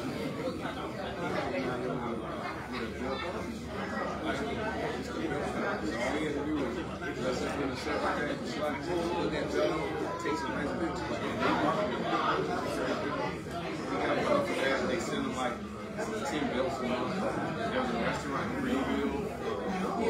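A crowd of men and women chatter at once in a large room.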